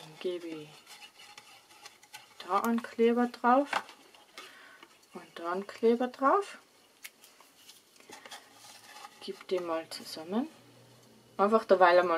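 Stiff paper rustles and taps softly as it is folded.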